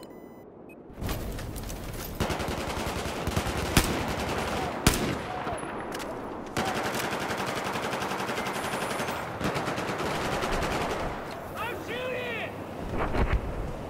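Rapid rifle gunfire rattles in quick bursts.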